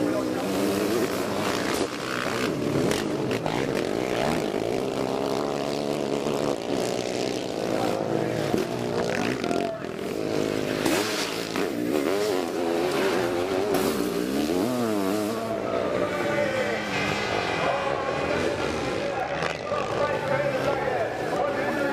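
Motorcycle engines roar and rev loudly as sidecar bikes race past.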